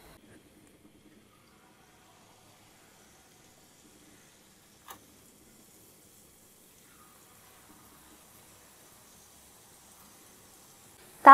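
Batter sizzles and bubbles in hot oil.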